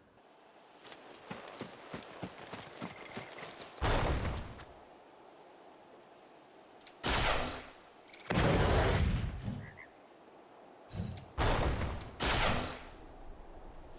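Footsteps swish through grass.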